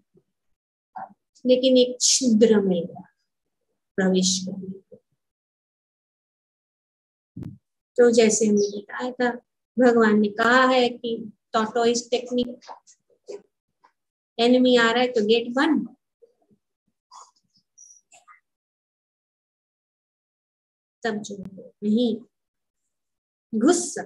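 A middle-aged woman speaks calmly through a headset microphone over an online call, with pauses.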